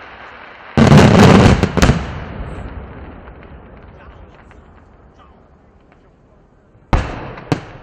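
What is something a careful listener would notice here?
Fireworks crackle loudly overhead and fade away.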